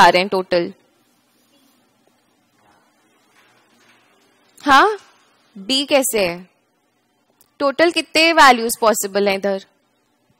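A young woman speaks calmly and close to a headset microphone, in short phrases with pauses.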